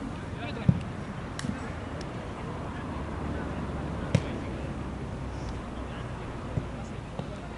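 A football is kicked with dull thuds outdoors.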